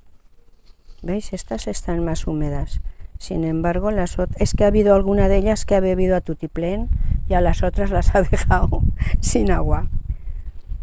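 A middle-aged woman speaks calmly and close into a clip-on microphone.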